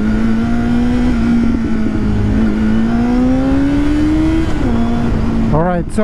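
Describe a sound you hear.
A motorcycle engine hums steadily, rising slightly in pitch and then dropping.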